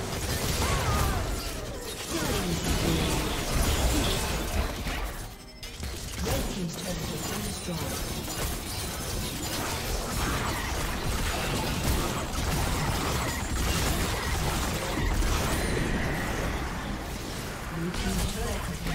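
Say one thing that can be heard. Game spells and attacks crackle and boom in quick bursts.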